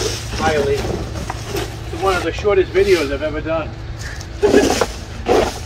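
Dry leaves rustle and crunch as they are scooped up and dumped into a bin.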